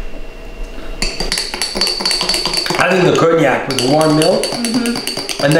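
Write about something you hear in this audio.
A spoon clinks against a glass as it stirs.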